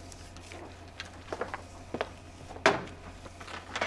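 A photocopier clicks as a woman presses its buttons.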